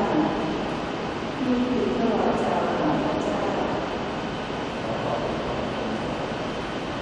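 A choir sings in a large echoing hall.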